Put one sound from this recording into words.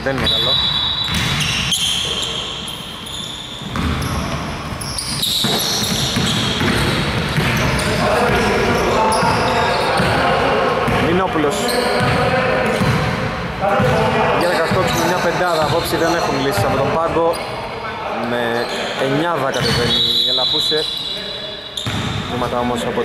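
Basketball sneakers squeak sharply on a wooden court in a large echoing gym.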